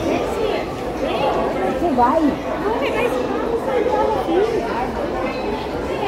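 A crowd of adults chatters nearby in a busy echoing hall.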